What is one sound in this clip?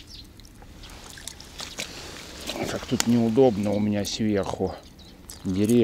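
A small fish splashes at the water's surface.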